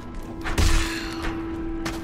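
A blade swishes through the air with a sharp whoosh.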